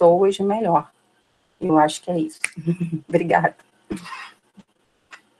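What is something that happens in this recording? A woman talks calmly over an online call.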